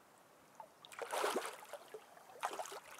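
Water splashes as a hooked fish thrashes at the surface.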